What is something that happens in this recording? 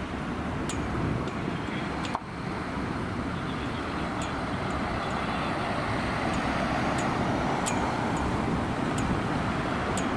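City traffic rumbles past.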